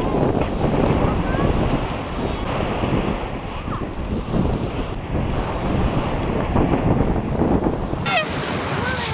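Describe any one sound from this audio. Small waves wash onto the shore.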